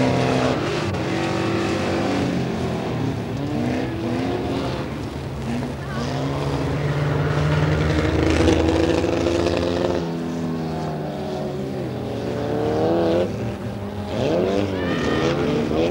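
Racing car engines roar and rev as cars speed around a track outdoors.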